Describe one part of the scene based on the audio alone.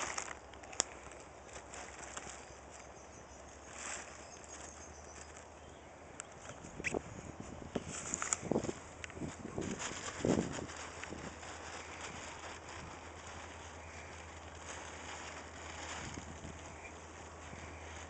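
A tarp flaps and rustles over a horse's back.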